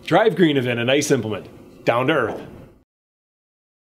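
A middle-aged man speaks cheerfully and close by.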